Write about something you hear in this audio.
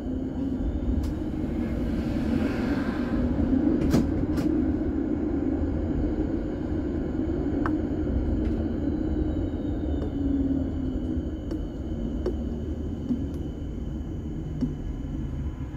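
Tram wheels click and knock over rail joints.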